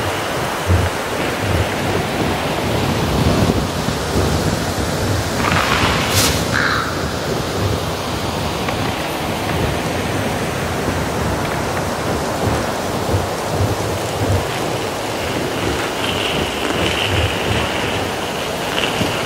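Footsteps thud and crunch quickly on rocky ground.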